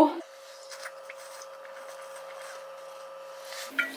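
A young woman gulps down a drink.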